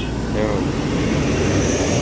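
A motorcycle engine putters by.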